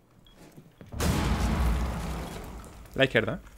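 An explosion bursts with a loud rumbling blast.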